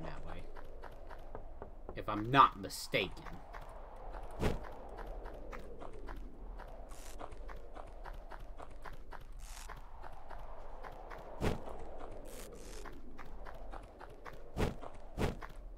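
Quick, light footsteps patter steadily in a video game.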